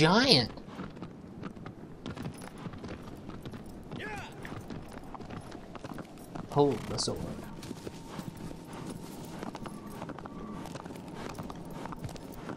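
A horse's hooves clop steadily on stone and grass.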